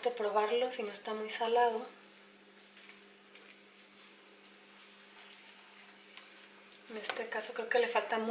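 A spatula stirs chicken and vegetables in a metal pan.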